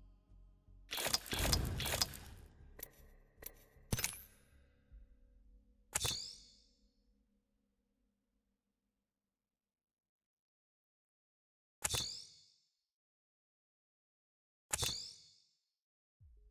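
Sharp whooshing menu sounds ring out as items change.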